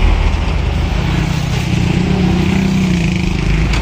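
A motorcycle engine buzzes past.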